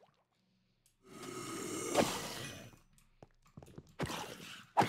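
A game creature grunts as it is struck repeatedly.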